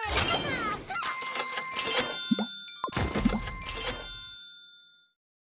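Coins chime rapidly as a score counts up.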